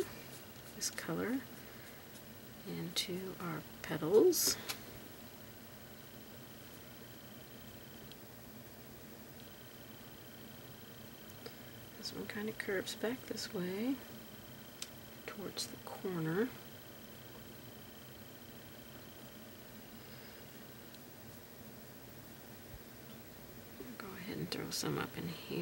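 A paintbrush softly strokes a canvas.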